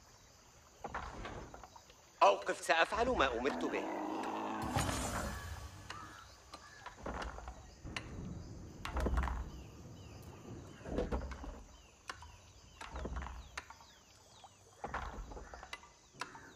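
Hammers knock on wood in short bursts.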